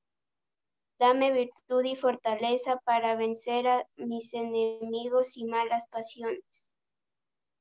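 A young girl speaks over an online call.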